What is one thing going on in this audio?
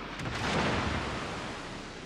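Shells crash into the sea with heavy splashes.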